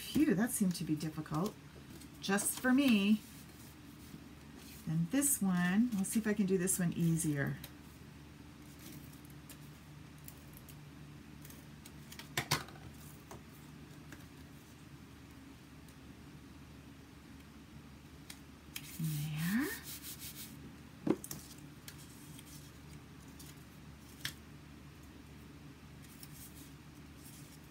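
Paper sheets rustle and tap softly against a table.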